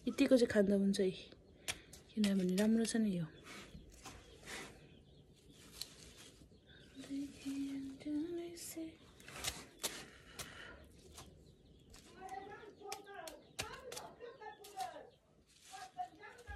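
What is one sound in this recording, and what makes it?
Leaves rustle as they are handled.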